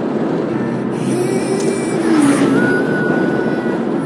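A large truck rushes past in the other direction.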